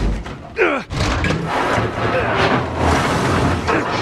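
Heavy metal elevator doors scrape as they are forced open by hand.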